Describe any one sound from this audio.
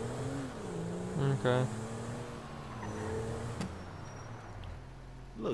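A car engine hums as a car drives along a road.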